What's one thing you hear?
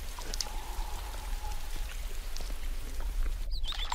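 Water drips and splashes into a muddy puddle.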